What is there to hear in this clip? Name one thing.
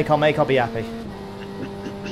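A racing car engine shifts up a gear, and its drone drops in pitch.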